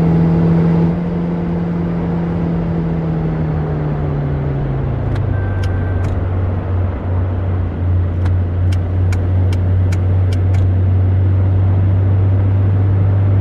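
A car engine hums steadily, its pitch dropping as the gear changes.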